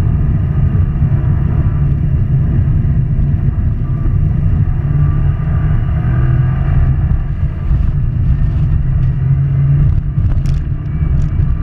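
A turbocharged flat-four engine roars at full throttle, heard from inside the car.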